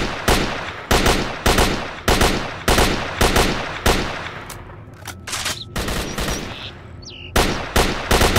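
A rifle fires single loud shots that echo outdoors.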